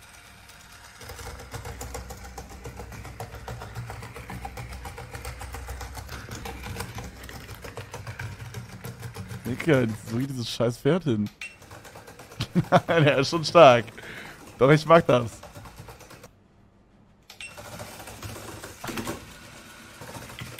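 A toy horse's small motor whirs and clicks steadily.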